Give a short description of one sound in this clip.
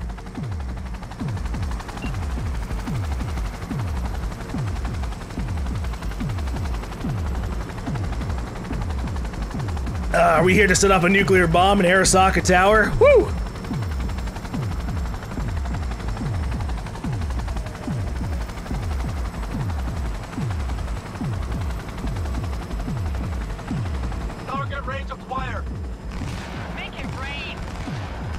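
A helicopter's rotor thumps steadily and fast.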